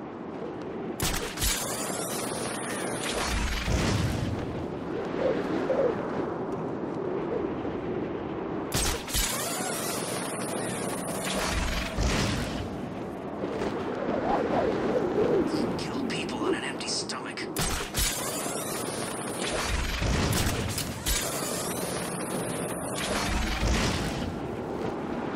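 A cape snaps and flaps sharply in the wind.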